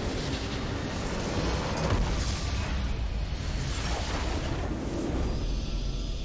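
Game battle effects crash and explode in a dense burst.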